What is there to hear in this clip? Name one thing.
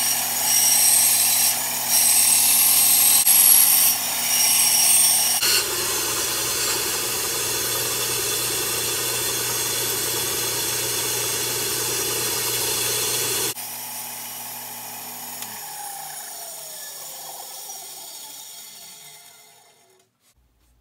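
A band saw motor hums loudly, then winds down.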